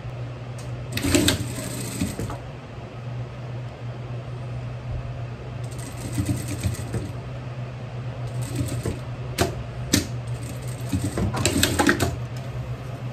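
A sewing machine hums and stitches in short bursts.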